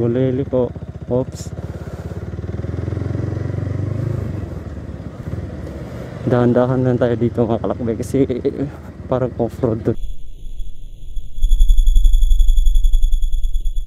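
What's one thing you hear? A motorcycle engine idles with a low, steady rumble close by.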